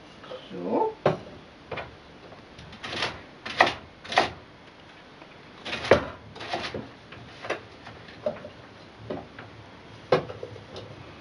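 A knife chops sharply on a wooden board.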